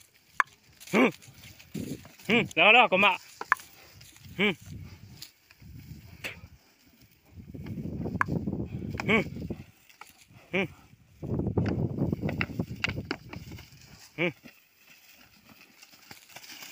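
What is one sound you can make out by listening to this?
Dry straw rustles and crunches under heavy hooves.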